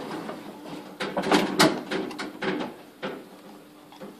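A lift button clicks as it is pressed.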